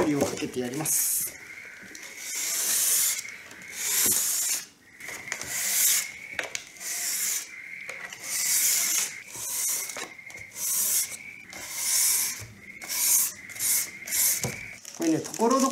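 Packing paper rustles and crinkles as it is handled.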